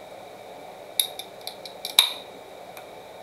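A metal drink can clicks and pops open with a fizz.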